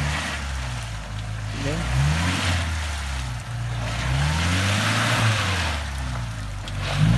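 An engine revs up and down loudly.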